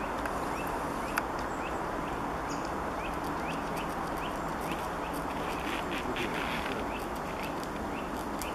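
A squirrel gnaws and nibbles at a nut up close.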